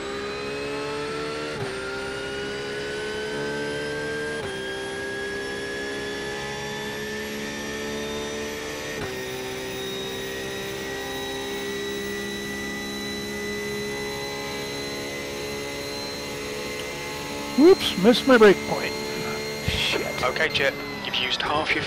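A race car engine drones, climbing slowly in pitch and dropping briefly at each gear change.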